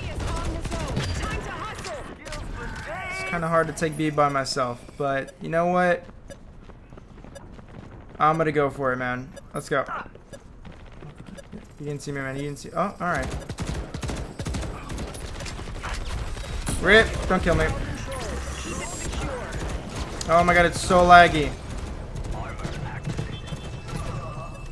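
Video game gunfire rattles in quick bursts.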